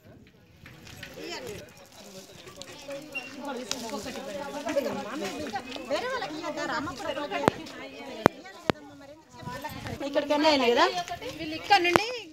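Several women talk at once, close by and with animation.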